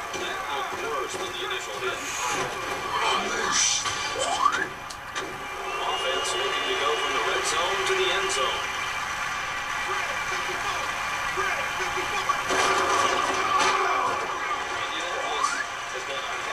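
Football players collide in heavy tackles.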